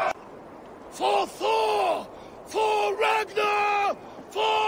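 A man shouts a rallying cry.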